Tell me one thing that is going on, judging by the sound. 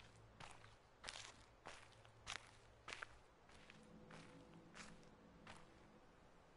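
Footsteps tap on a hard path.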